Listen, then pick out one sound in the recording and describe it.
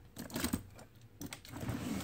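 Plastic toys rattle and clatter in a bin.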